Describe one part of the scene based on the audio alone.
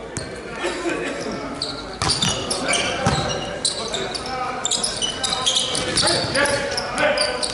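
Sneakers squeak on a hard court floor in a large echoing hall.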